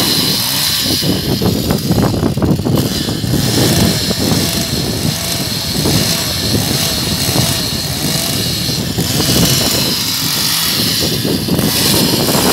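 A chainsaw roars loudly close by as it cuts into wood.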